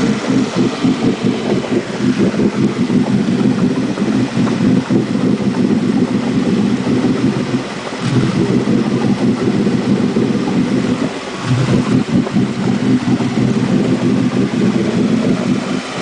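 Water churns and bubbles behind a boat's stern.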